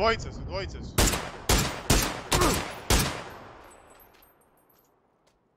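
A rifle fires several loud shots in quick succession, echoing afterwards.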